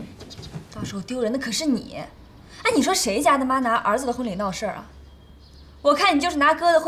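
A young woman speaks reproachfully, close by.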